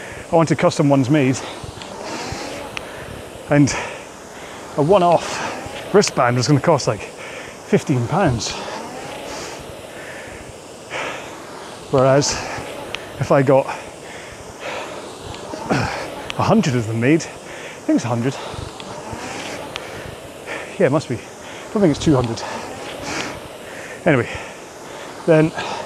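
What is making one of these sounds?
A man talks steadily through a clip-on microphone.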